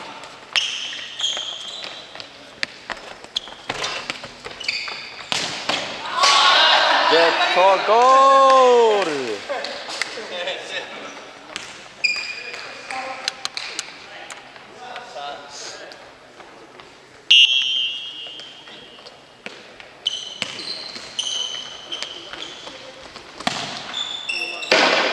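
A football thuds off feet and the floor in a large echoing hall.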